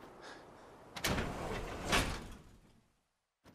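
A heavy metal door clanks and grinds open.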